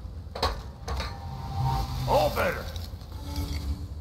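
A magical shimmer rings out brightly.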